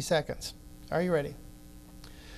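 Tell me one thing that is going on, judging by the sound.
A man reads out into a microphone.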